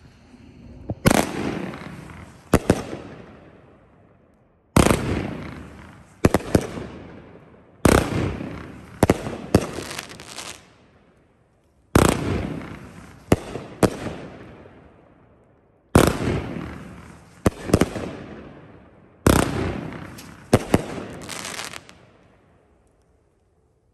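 Fireworks boom and crackle in loud bursts outdoors, echoing away.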